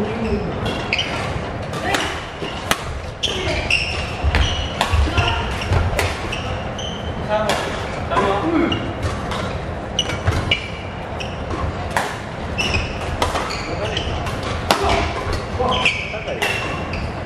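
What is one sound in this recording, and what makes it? Sports shoes squeak on a wooden court.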